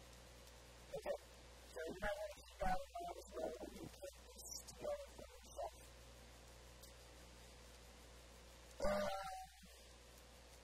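A man speaks calmly into a clip-on microphone.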